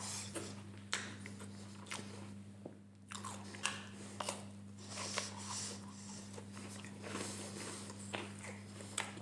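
A metal spoon scrapes and clinks against chocolate.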